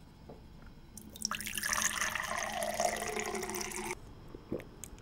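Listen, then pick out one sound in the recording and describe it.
Water pours into a glass with a splashing, rising gurgle.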